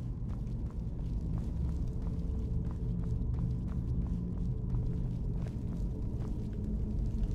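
Footsteps tread quickly and steadily on a stone floor.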